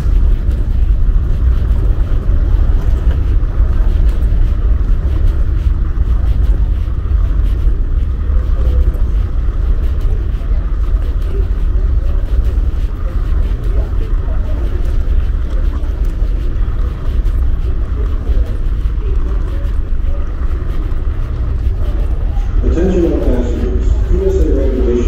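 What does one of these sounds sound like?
A low steady rumble fills a large echoing hall.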